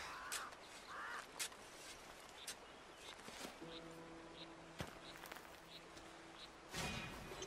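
Footsteps rustle softly through dry undergrowth.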